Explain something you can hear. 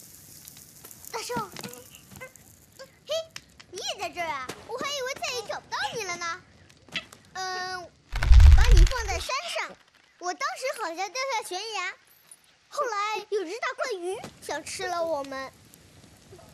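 A young boy speaks with feeling, close by.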